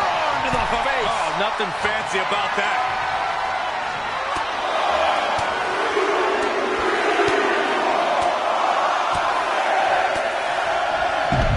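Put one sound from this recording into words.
A large crowd cheers in an arena.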